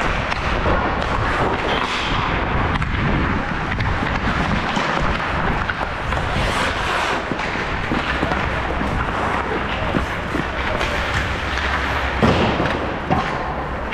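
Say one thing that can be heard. A hockey stick taps and slaps a puck on the ice.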